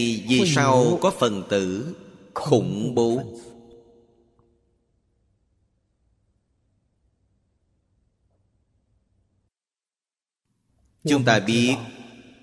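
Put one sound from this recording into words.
An elderly man speaks calmly into a close microphone, pausing between phrases.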